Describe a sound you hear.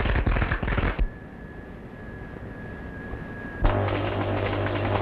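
Heavy machinery hums steadily.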